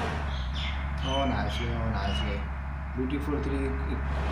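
A young man speaks briefly close to a microphone.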